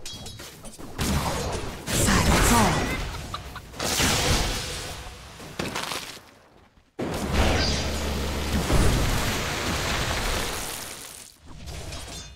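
Magic spells whoosh and burst loudly.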